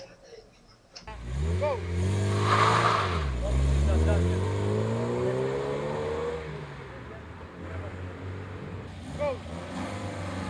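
A car engine revs hard and accelerates away, its pitch rising and falling.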